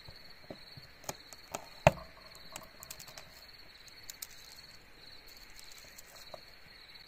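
A knife clicks and scrapes against a plate.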